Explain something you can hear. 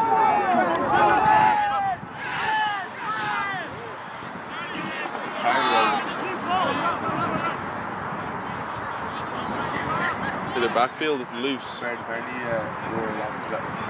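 Young women shout and call out across an open field outdoors.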